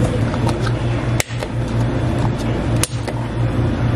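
A plastic lid snaps onto a cup.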